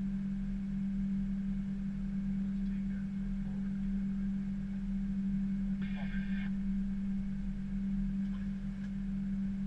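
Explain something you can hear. An aircraft's engines hum steadily as it taxis.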